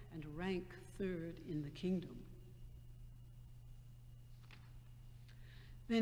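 An older woman speaks calmly into a microphone in a large echoing room.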